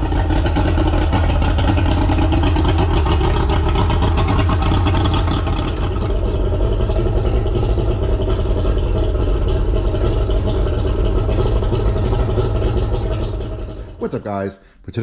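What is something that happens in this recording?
An outboard motor idles with a steady rumble.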